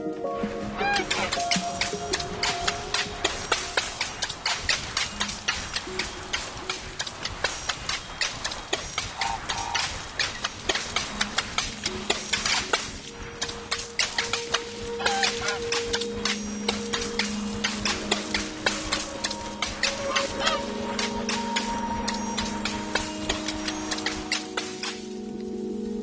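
Rapid soft chimes ring out as vines spread.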